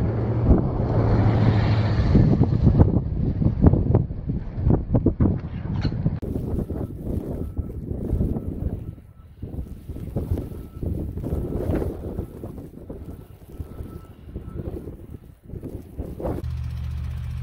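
Strong wind gusts and roars outdoors.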